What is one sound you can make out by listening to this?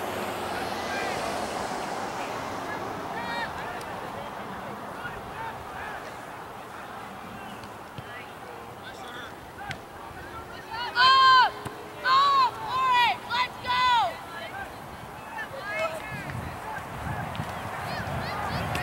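Spectators chatter and call out in the distance outdoors.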